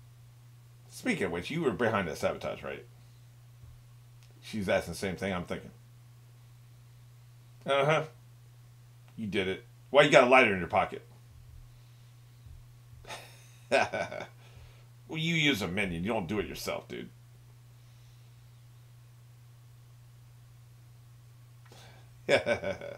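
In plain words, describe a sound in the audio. An older man talks calmly into a nearby microphone, in short bursts.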